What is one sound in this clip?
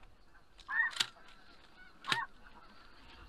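Shotgun blasts ring out twice, outdoors.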